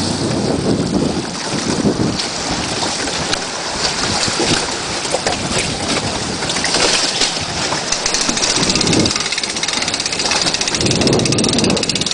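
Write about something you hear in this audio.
Water laps and splashes against a small metal boat.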